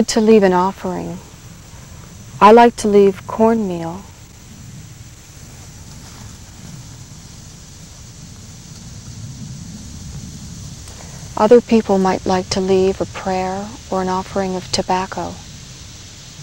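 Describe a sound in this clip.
A young woman speaks calmly and softly close by.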